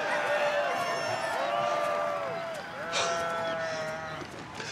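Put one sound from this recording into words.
Goats bleat nearby.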